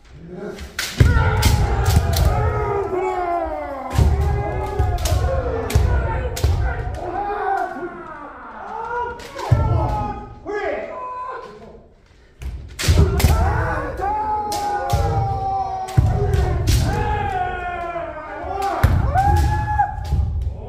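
Bamboo swords crack sharply against armour.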